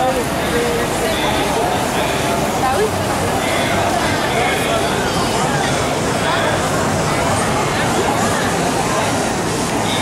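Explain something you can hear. A large crowd of men, women and children chatters outdoors all around.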